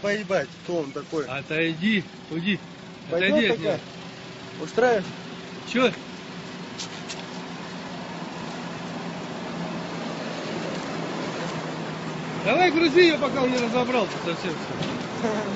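A young man talks loudly and with animation close by.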